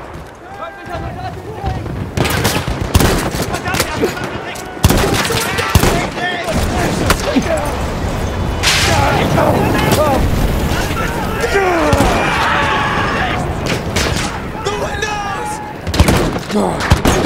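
Explosions boom and rumble nearby.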